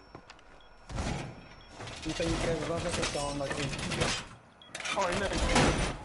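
Metal panels clank and slide into place.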